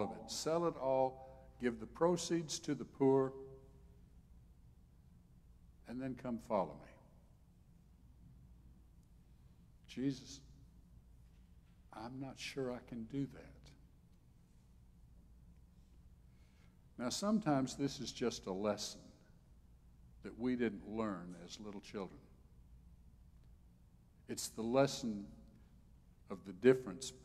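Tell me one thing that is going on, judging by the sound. An elderly man speaks calmly through a microphone, with pauses.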